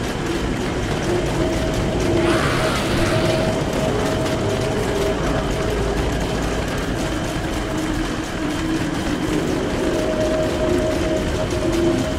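Rain falls.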